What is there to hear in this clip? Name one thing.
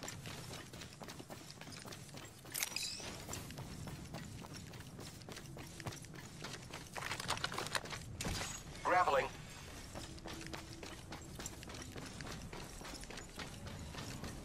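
Quick footsteps run over grass and dirt.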